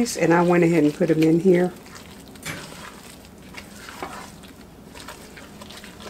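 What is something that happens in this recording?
A spatula stirs a thick mixture in a pot with soft scraping.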